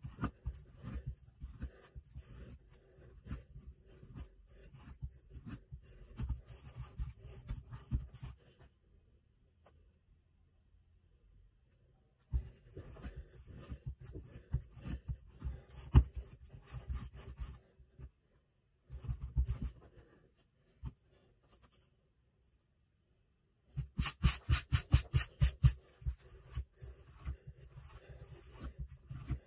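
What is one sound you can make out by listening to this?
Hands knead and thump dough on a hard countertop.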